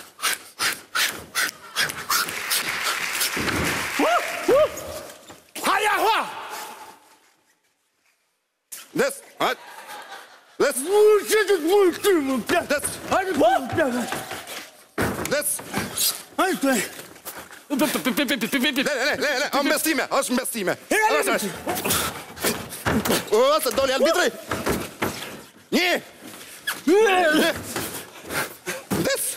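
Feet thump and shuffle on a floor.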